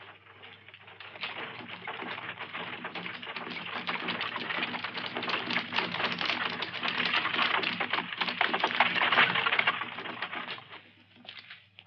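Horses' hooves clatter.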